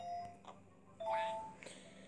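A cartoon creature makes a happy gobbling sound.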